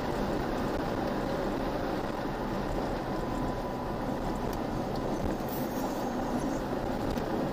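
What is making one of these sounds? A vehicle engine hums steadily inside a car.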